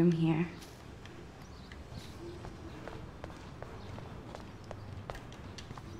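Footsteps tap lightly on pavement.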